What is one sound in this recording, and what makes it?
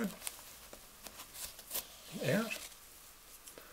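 A shoelace rustles and scrapes as it is pulled through a shoe's eyelets.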